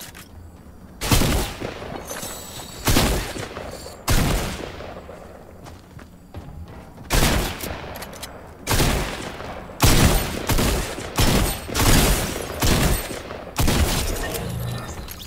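Gunshots ring out in loud, sharp bursts.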